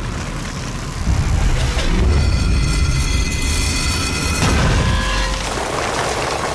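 A heavy stone pillar grinds and rumbles as it sinks into the ground.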